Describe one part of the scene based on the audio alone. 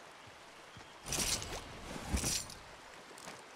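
A rifle is picked up with a short metallic rattle.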